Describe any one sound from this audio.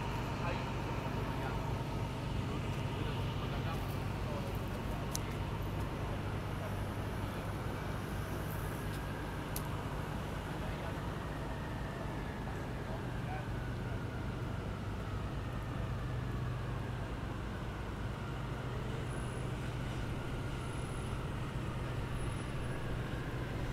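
City traffic rumbles steadily in the distance outdoors.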